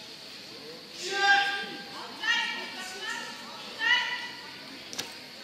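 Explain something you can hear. A young man shouts sharply several times in a large echoing hall.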